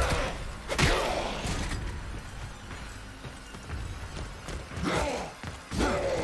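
A monster snarls and growls.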